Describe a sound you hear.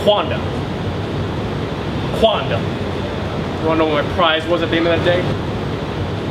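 A young man speaks nearby in a conversational tone.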